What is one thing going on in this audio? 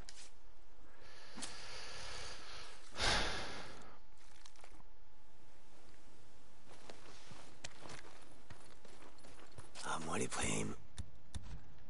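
A young man talks calmly into a close microphone.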